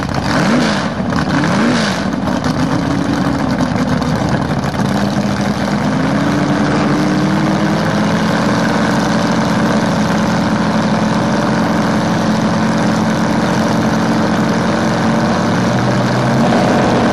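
A loud race car engine idles with a deep, rough rumble.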